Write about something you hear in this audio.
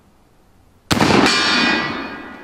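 A steel target rings out after being hit and slowly fades.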